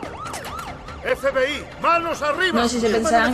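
A man shouts commands forcefully.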